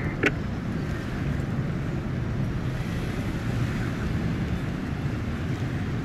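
An ambulance engine hums as the vehicle drives off.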